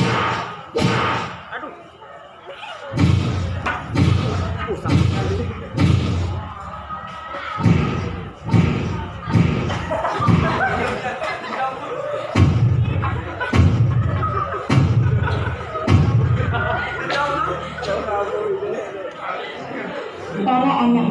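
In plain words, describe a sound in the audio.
A young man speaks loudly and dramatically in an echoing hall.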